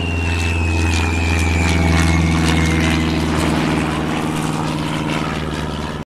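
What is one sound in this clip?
A small propeller plane's engine drones as it flies past.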